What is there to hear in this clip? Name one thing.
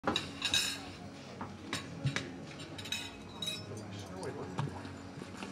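Fingers tap lightly on a touchscreen.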